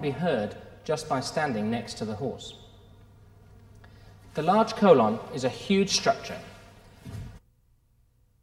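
A middle-aged man speaks calmly and clearly to a listener nearby.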